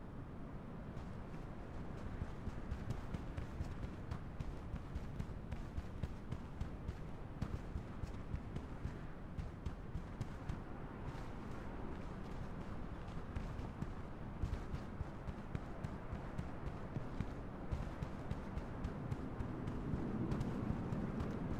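Footsteps patter quickly over grass and stone.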